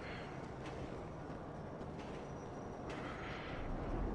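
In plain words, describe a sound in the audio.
Footsteps thud on a wooden ramp.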